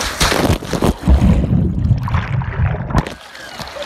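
Water churns and bubbles as a man plunges under.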